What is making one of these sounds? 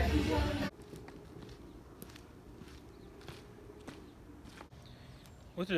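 Footsteps scuff on pavement outdoors.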